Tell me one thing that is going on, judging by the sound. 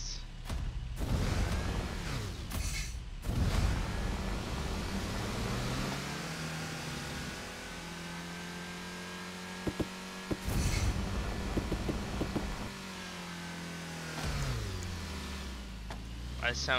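A car engine revs and roars as the car speeds up, then winds down.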